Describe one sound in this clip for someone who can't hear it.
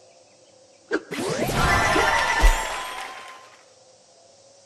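A sparkling burst of celebratory sound rushes by.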